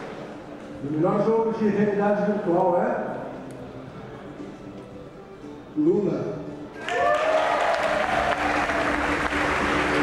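A man speaks with animation into a microphone, heard over loudspeakers in a large hall.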